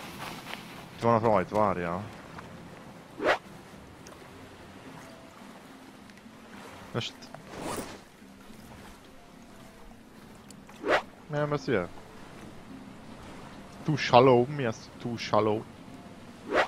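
A man talks in short bursts into a close microphone.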